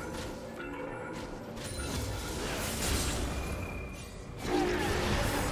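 Magic spell effects crackle and whoosh in a video game battle.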